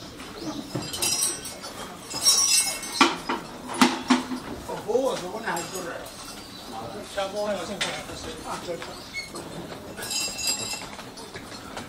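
Metal ornaments jingle and clink as they are lifted.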